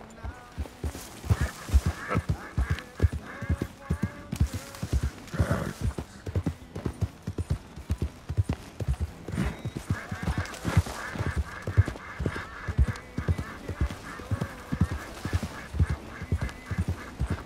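Leaves and brush rustle as a horse pushes through.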